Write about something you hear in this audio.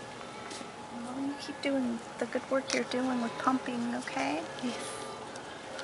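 A woman speaks softly and sweetly close by.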